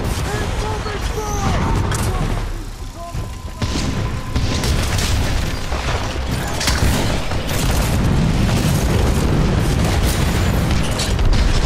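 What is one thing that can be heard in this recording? Deep rumbling booms roll on throughout.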